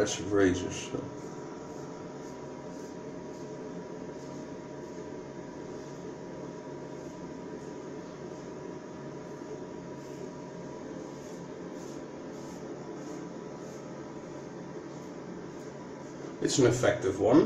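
A razor scrapes across stubble in short strokes.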